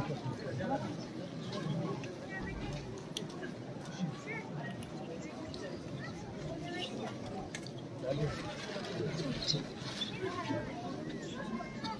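A large outdoor crowd murmurs and chatters throughout.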